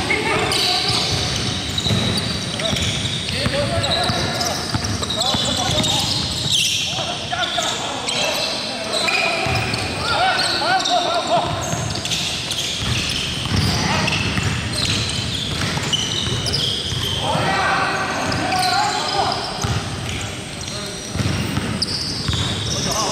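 Basketballs bounce on a hard floor in a large echoing hall.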